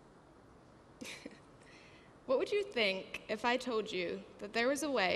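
A young woman speaks into a microphone in a large echoing hall.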